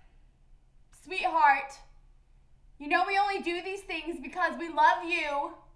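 A young woman shouts loudly and desperately.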